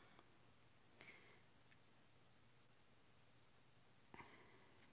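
Paper rustles and taps softly under a hand.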